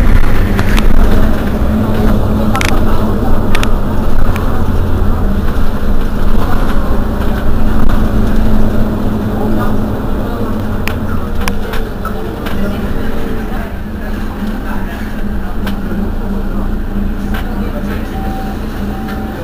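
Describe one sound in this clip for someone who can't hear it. A bus engine idles with a low, steady rumble close by.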